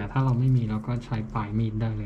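A knife cuts through a soft tuber.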